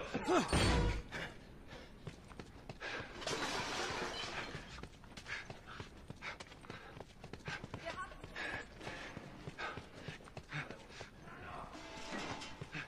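A man's footsteps run quickly over hard ground.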